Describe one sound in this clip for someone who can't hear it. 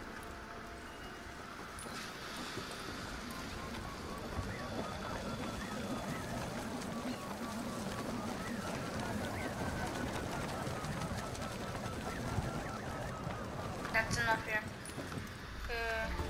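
Wind rushes steadily past a paraglider in flight.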